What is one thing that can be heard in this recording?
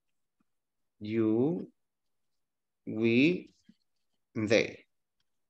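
A man speaks slowly, saying single words with pauses, heard through an online call.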